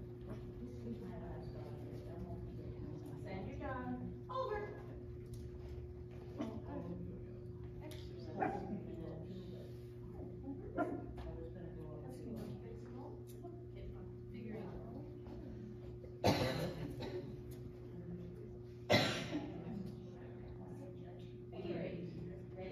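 A woman speaks calmly in a large echoing hall.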